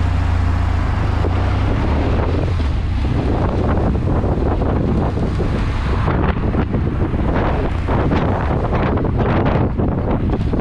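A motorcycle engine rumbles steadily while riding.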